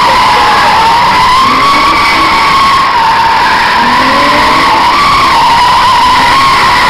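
Car engines rev hard.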